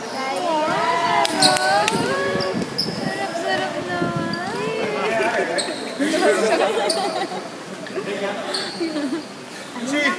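Young men talk and shout with animation close by, in a large echoing hall.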